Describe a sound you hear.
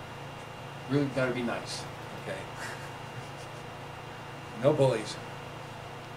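An elderly man speaks in short bursts, lecturing.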